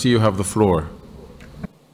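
An older man speaks formally through a microphone, then stops.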